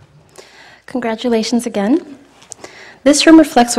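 A woman speaks through a microphone in an echoing room.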